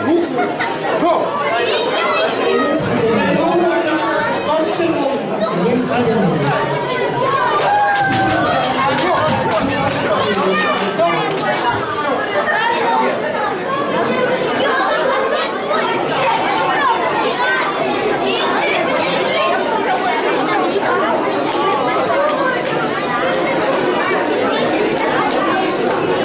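A crowd of children chatters and shouts in a large echoing hall.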